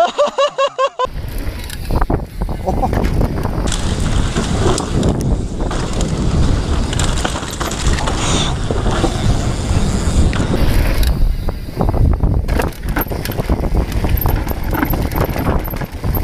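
Wind buffets the microphone while riding fast.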